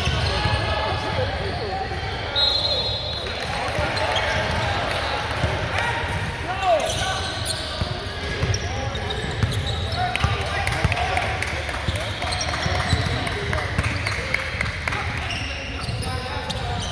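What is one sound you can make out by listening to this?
A basketball bounces on the floor again and again.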